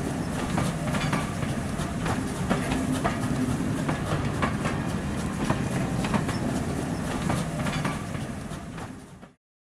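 A train rushes past close by with a loud rumble.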